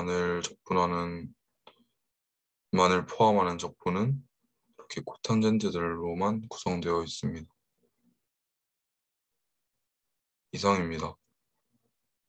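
A young man speaks calmly into a microphone, heard through an online call.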